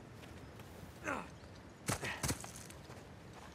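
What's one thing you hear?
Footsteps thud and rustle through leaves.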